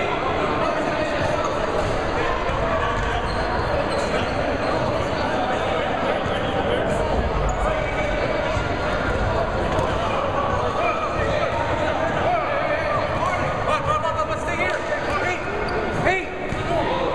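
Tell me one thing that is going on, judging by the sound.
A crowd of men chatter at once in a large echoing gym.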